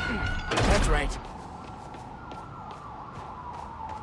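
Quick footsteps run over concrete.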